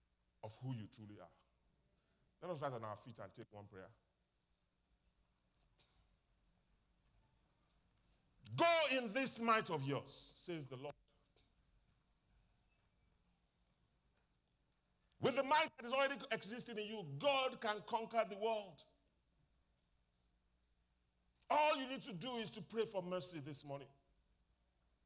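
A man speaks with emphasis through a microphone in a large hall, pausing between phrases.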